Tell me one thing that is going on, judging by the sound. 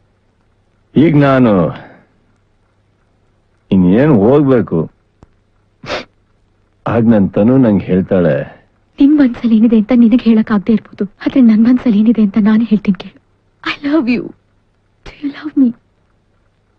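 A young man sings a melodic line.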